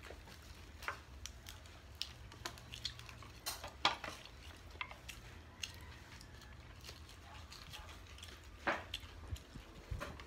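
Crispy fried food crunches and rustles as hands handle it.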